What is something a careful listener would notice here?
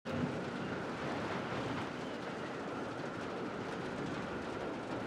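A helicopter's rotor and engine roar steadily.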